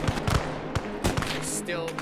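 Rifles fire in rapid cracks nearby.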